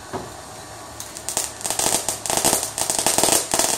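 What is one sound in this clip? A firework fizzes and crackles loudly close by.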